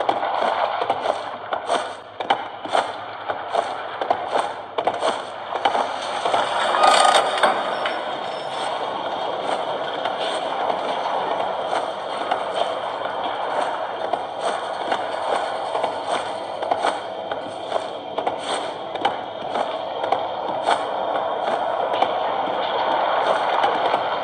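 Footsteps thud steadily on wooden boards from a small speaker.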